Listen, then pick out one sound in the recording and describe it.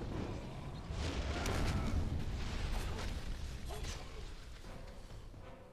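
A loud fiery explosion booms and rumbles.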